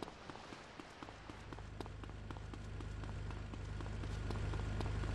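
A car engine hums steadily, growing louder.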